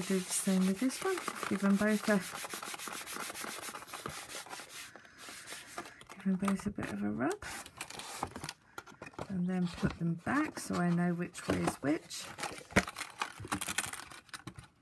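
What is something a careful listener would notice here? Stiff card rustles and scrapes as it is handled.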